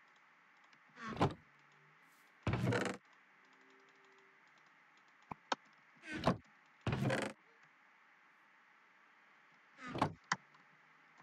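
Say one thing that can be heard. A wooden chest creaks open and thuds shut several times.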